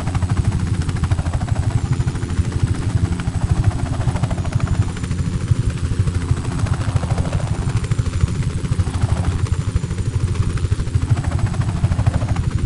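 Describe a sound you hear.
Helicopter rotor blades thump rapidly and steadily overhead.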